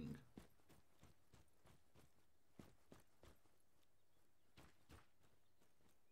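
Footsteps crunch on a forest path.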